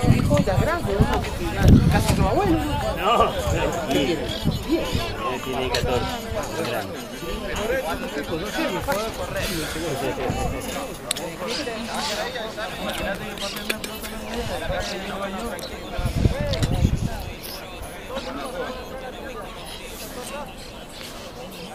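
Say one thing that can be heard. Young men shout and call to each other across an open field outdoors.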